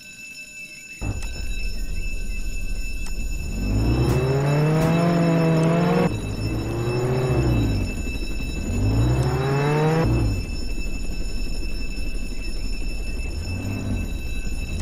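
A car engine revs up, drops and revs up again.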